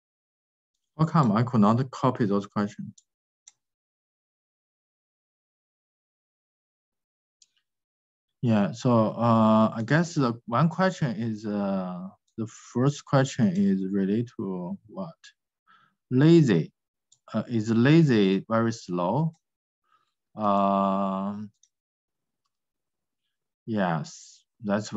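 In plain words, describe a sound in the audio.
A man speaks calmly through a microphone on an online call, pausing now and then.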